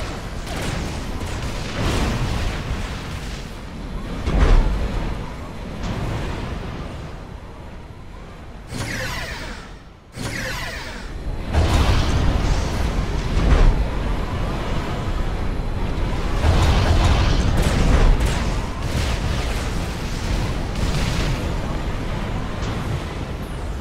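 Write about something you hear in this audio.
Explosions and gunfire rumble in a battle.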